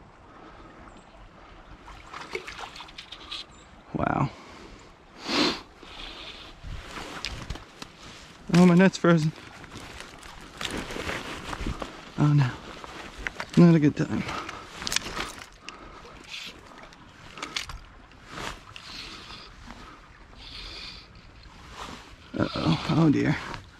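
Water ripples gently in a slow creek.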